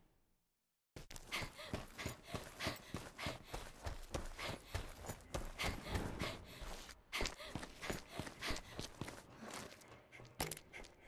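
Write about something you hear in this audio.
Quick footsteps run across hard ground and up stone stairs.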